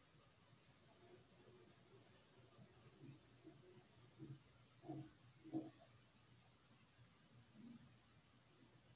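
A man speaks softly and slowly into a close microphone, with long pauses.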